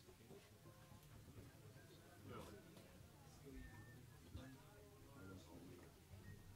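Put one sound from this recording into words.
A small jazz band plays live in a room.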